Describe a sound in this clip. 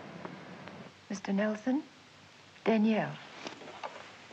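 A young woman talks on the phone.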